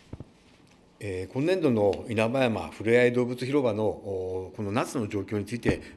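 A middle-aged man speaks formally into a microphone.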